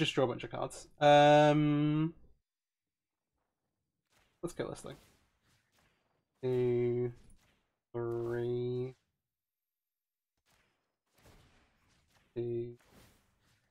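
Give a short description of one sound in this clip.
Short electronic chimes ring out several times.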